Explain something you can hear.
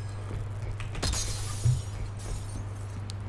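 Glass shatters with a sharp crash and tinkles down.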